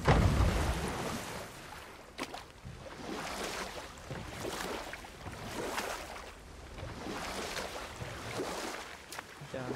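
Oars splash steadily in water.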